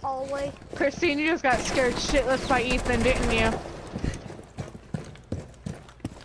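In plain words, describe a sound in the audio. A rifle fires a string of shots.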